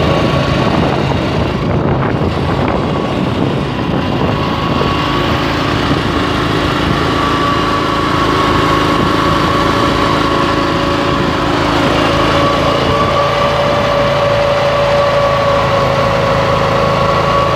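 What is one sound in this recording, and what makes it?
A small petrol engine runs on a curb machine.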